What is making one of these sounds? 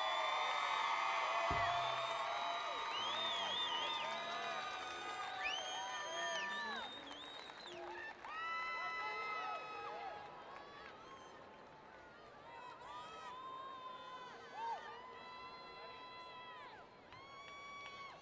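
A marching brass band plays held, swelling chords that echo around a large stadium.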